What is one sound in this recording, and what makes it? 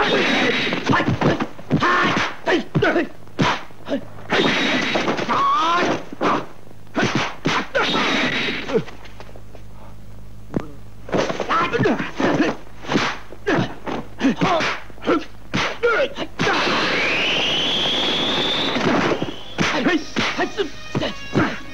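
Punches and kicks land with sharp, loud thwacks.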